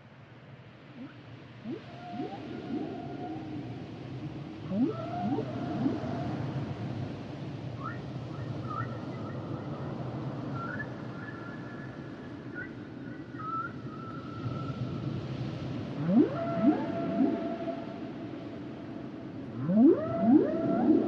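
Dolphins whistle and call underwater.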